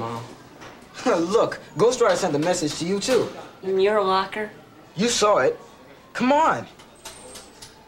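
A second teenage boy answers with animation.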